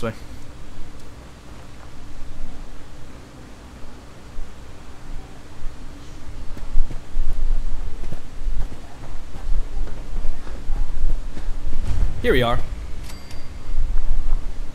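Footsteps crunch on gravel at a steady walking pace.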